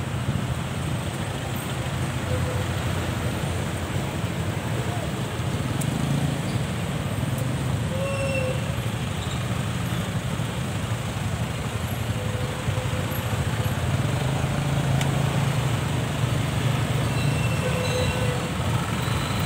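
Traffic hums steadily on a busy street outdoors.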